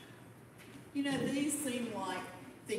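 An older woman speaks clearly and loudly into a microphone.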